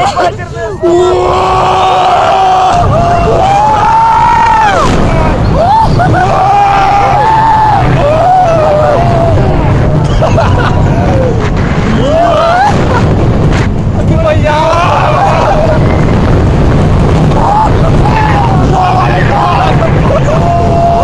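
Young men laugh loudly close by.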